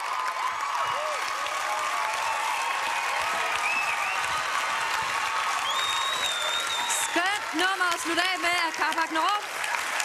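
A large crowd cheers and shouts loudly in a big hall.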